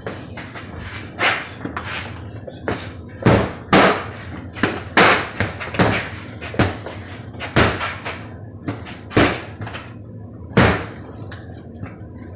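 Fists punch a swinging ball on a cord with sharp, quick thuds.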